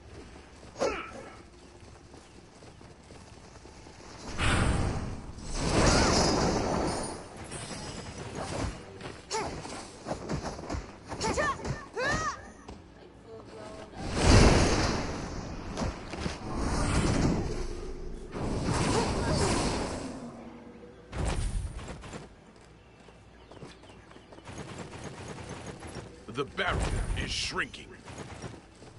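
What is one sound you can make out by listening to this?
A young woman talks into a microphone with animation.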